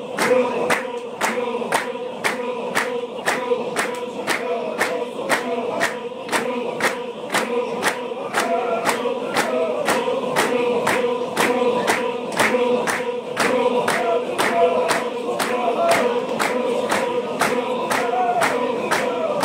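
A large group of men chants together loudly in unison outdoors.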